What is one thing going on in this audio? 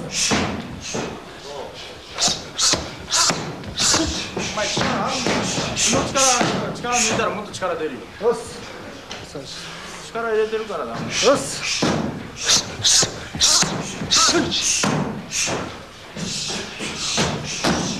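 Punches and kicks thud sharply against a padded shield.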